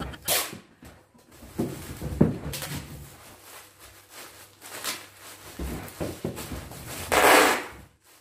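Packing tape rips as it is pulled off a roll.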